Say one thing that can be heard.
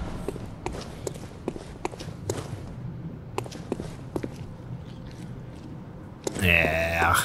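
Footsteps tap on stone paving.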